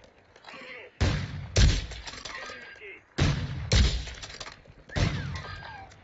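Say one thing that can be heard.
Rifle shots bang loudly, several times in a row.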